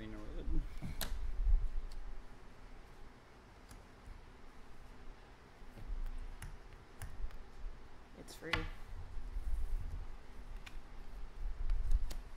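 Game tokens click against a wooden table.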